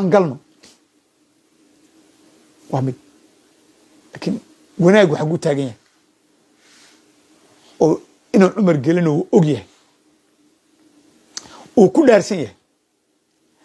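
A man speaks with animation into a microphone in short bursts with pauses.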